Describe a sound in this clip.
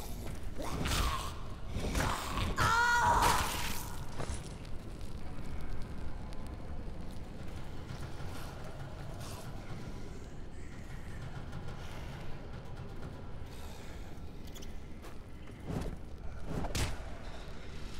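A flaming club smashes into a body with heavy thuds.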